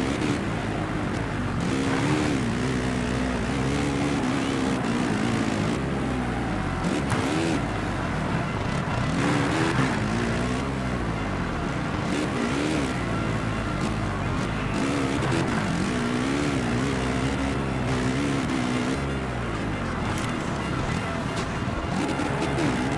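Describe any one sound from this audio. A motorcycle engine revs and whines, rising and falling in pitch with each gear change.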